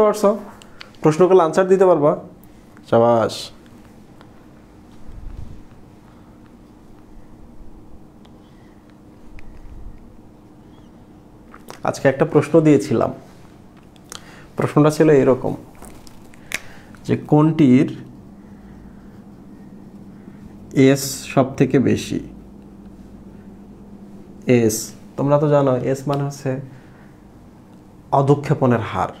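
A man speaks calmly and clearly in short bursts with pauses, close by.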